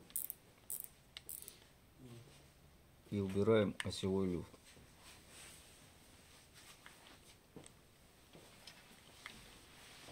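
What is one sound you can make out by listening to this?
A fishing reel's mechanism clicks and ticks as it is handled.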